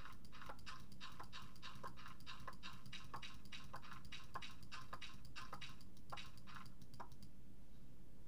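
A pickaxe taps rapidly at stone in a game.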